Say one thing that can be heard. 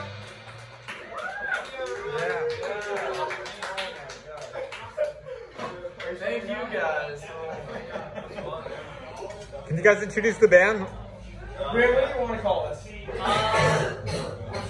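Young men talk and laugh loudly nearby.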